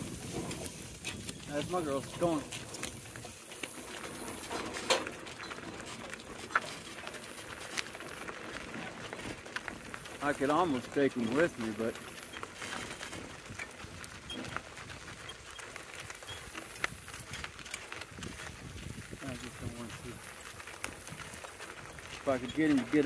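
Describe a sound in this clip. Harness chains jingle and clink.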